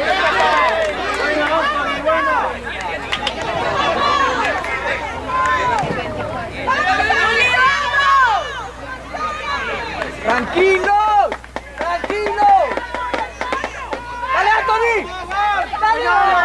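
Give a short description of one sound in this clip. Children shout and call out loudly across an open outdoor field.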